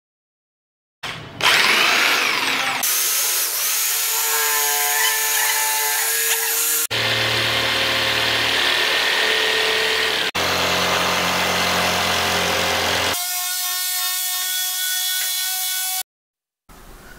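A jigsaw whines loudly as it cuts through a board.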